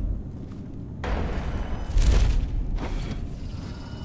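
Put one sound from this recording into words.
A rushing whoosh swells and fades.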